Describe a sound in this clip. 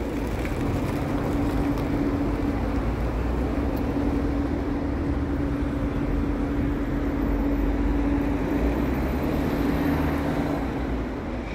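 A bus engine idles with a steady low hum nearby.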